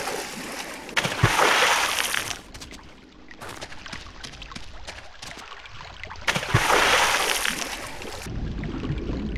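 Water splashes as someone swims through it.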